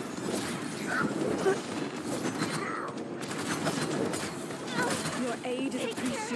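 Game abilities whoosh and crackle.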